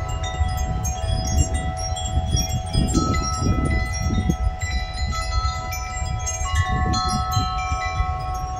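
Thunder rumbles in the distance.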